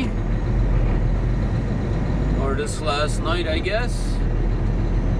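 A truck engine rumbles steadily inside the cab.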